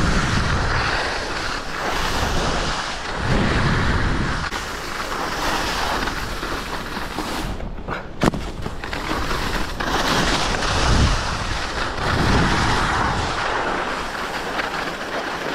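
Snowboard edges scrape and hiss over hard snow.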